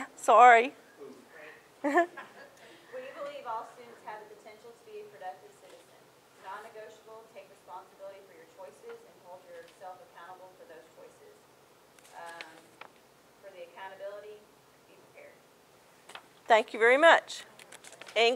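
A middle-aged woman speaks calmly and clearly, close by.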